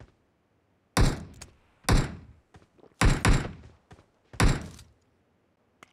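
A rifle fires several loud shots.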